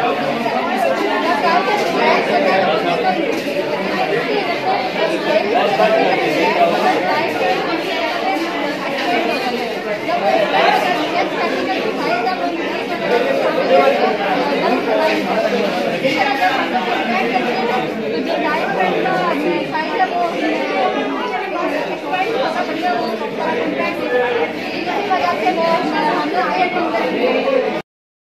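A crowd of young men and women chatter in the background.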